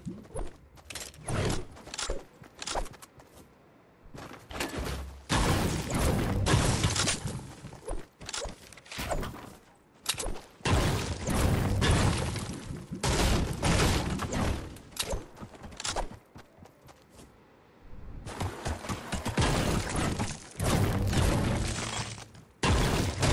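Footsteps crunch on snow and ground.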